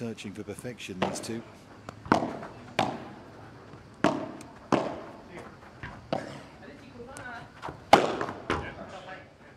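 Padel rackets strike a ball back and forth in a sharp rally.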